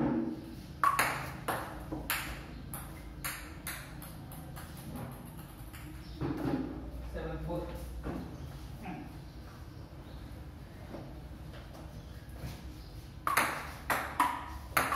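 A ping-pong ball clicks sharply back and forth on paddles and a table.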